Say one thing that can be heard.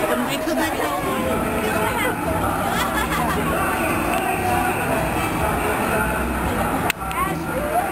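Young girls chatter and laugh close by.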